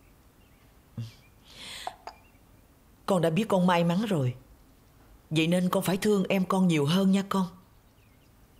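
A middle-aged woman speaks earnestly nearby.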